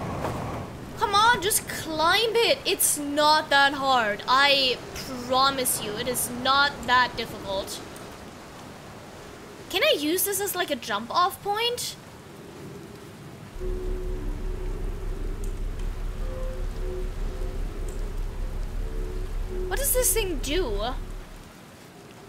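A young woman talks with animation into a microphone.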